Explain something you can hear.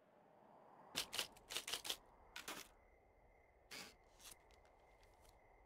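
A card is pulled from a typewriter with a short rustle.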